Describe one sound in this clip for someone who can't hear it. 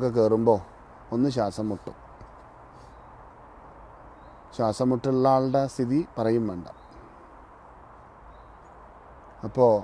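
A man chants in a steady, sung voice close by.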